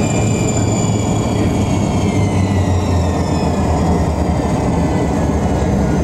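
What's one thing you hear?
A high engine whine drops in pitch as a plane slows.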